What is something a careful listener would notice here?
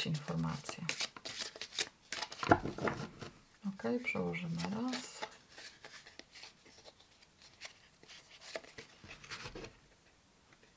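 Playing cards are shuffled by hand with quick, papery riffles and slaps.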